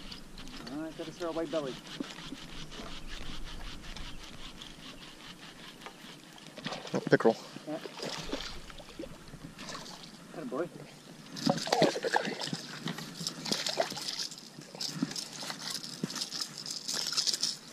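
A fishing reel clicks and whirs as its line is wound in quickly.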